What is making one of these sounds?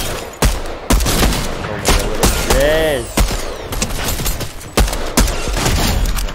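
Gunshots fire in sharp, sudden bursts.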